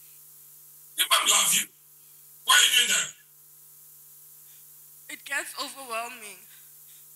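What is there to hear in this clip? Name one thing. A young woman speaks into a microphone close up, in short bursts with pauses.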